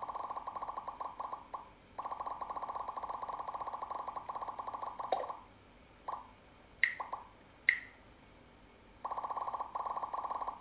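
A mobile game plays rapid, bright ticking sounds.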